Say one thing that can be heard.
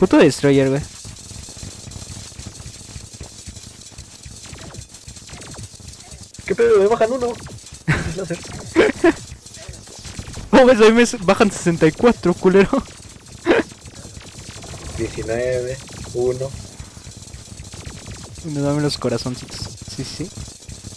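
Video game combat sounds crackle and zap rapidly.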